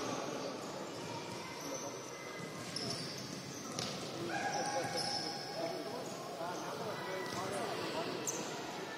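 Sneakers squeak sharply on an indoor court.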